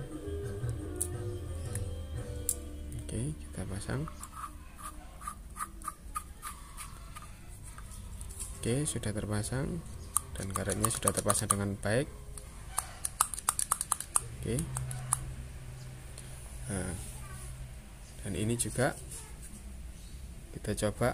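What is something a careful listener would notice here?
Plastic parts click and tap against each other as they are handled and fitted together.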